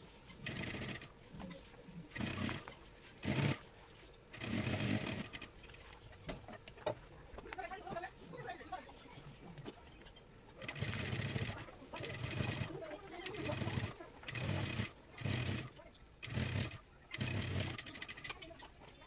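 A sewing machine runs in short bursts, whirring and stitching.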